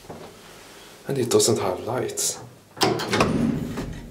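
Elevator buttons click as they are pressed.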